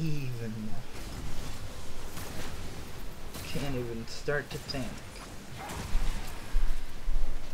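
Clashing sword strikes and spell effects crackle in a fight.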